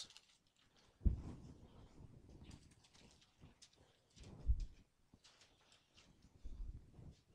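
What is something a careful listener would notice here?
Pages of a book rustle as a man turns them.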